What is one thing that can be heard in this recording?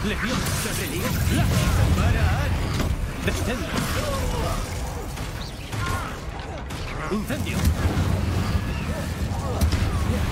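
Heavy blows thud and boom with a deep rumble.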